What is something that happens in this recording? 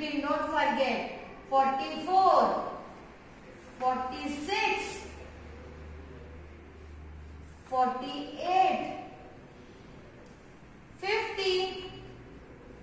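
A young woman speaks calmly and clearly, as if teaching, close by.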